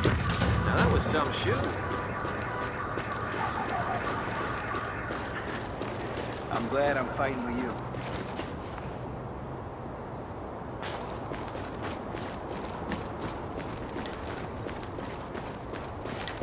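Footsteps crunch through snow at a steady jog.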